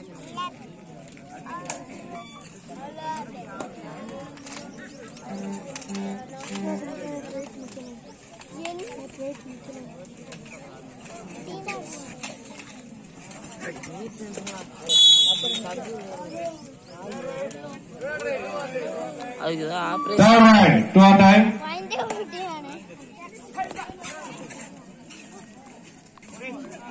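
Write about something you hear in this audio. A crowd of spectators chatters outdoors.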